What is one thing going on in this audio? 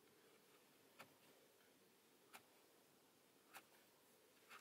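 A switch clicks softly a few times.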